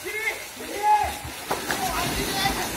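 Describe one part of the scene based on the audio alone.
Swimmers jump into a pool with a big splash.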